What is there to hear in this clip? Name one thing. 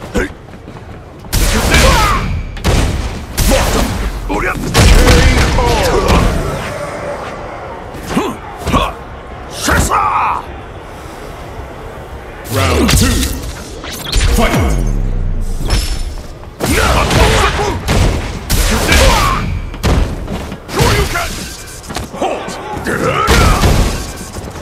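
Punches and kicks thud and crash from a small game console's speaker.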